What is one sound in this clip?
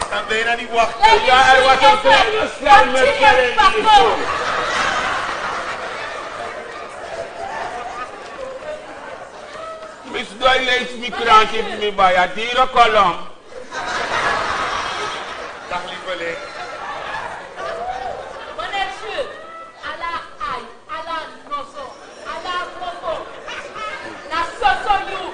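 A man speaks loudly and with animation in an echoing hall.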